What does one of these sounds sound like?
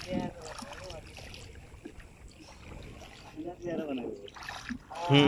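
Water sloshes and splashes as a man wades through it.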